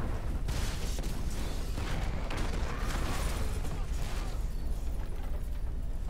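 Fires crackle.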